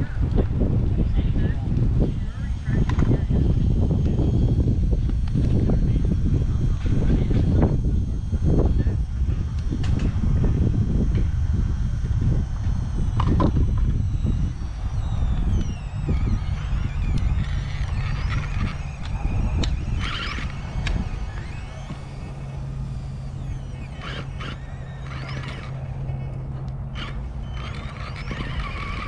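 A small electric motor whirs and strains as a toy truck crawls.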